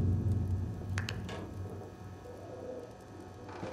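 A heavy metal door swings open with a creak.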